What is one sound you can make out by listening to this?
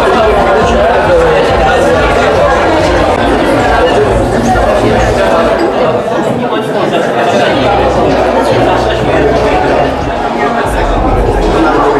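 A crowd of men and women chatter at once in a busy room.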